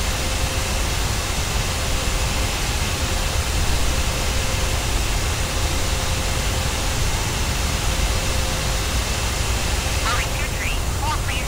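Jet engines of a twin-engine airliner roar steadily in cruising flight.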